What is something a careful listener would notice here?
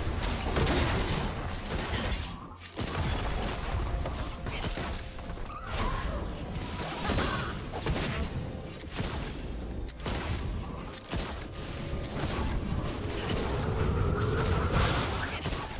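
Magic blasts and clashing weapons crackle and whoosh during a fight.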